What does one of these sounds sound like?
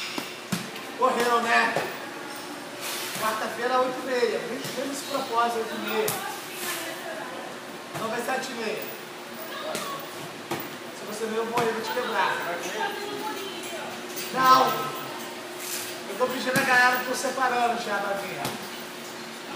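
A man coaches and calls out with animation nearby.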